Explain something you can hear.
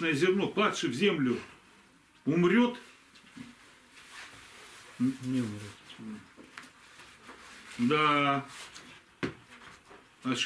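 An elderly man reads aloud slowly and calmly, close by, with pauses between phrases.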